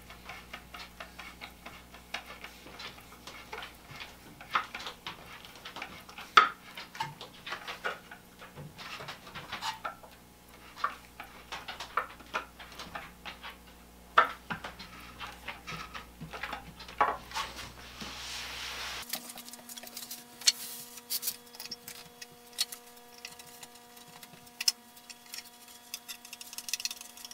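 A screwdriver scrapes and clicks against metal in short bursts.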